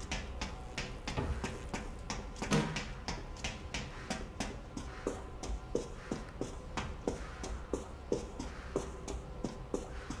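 Quick footsteps run across a wooden floor.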